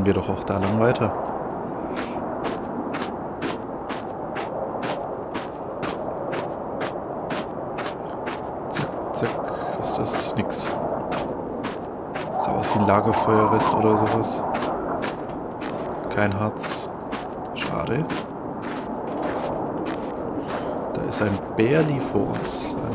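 Strong wind howls steadily through a snowstorm.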